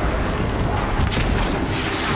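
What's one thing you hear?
An arrow whooshes from a bow.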